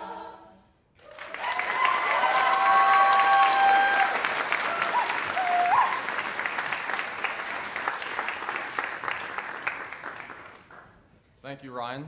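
An audience applauds and cheers loudly in a hall.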